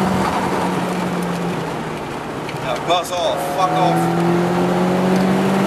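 A car engine drones steadily from inside the car.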